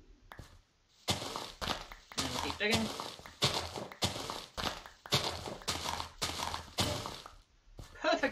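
A shovel digs into dirt with quick, repeated crunches.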